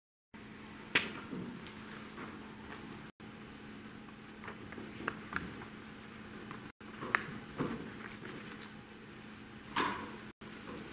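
Footsteps tread slowly on a wooden floor in a quiet, echoing room.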